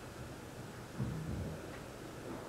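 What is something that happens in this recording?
A chair creaks as a man stands up in a large echoing hall.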